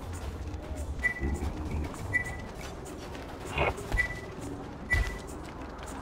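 Short electronic menu blips chime in a quick series.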